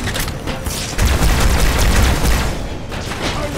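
An explosion booms and crackles with electric bursts.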